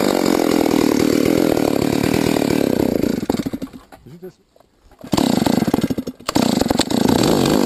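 A chainsaw engine roars at full throttle, drops away briefly, then revs hard again.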